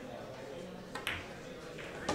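A cue strikes a pool ball with a sharp tap.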